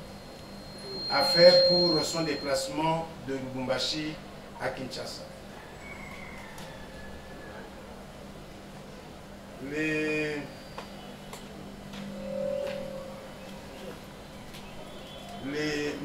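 A man speaks calmly into a microphone in short bursts.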